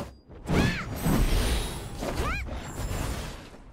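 A magic blast bursts with a deep rumble.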